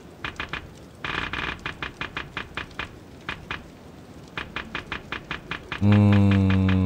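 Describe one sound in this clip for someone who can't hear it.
Short menu blips tick rapidly, one after another.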